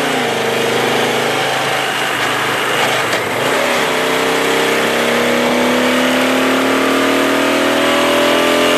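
A motorcycle engine hums steadily and slowly rises in pitch.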